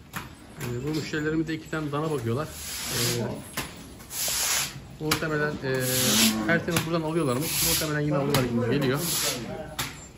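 A stiff broom scrapes and swishes across a wet floor.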